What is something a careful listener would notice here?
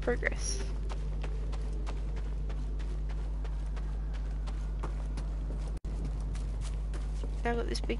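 Footsteps run over rocky ground.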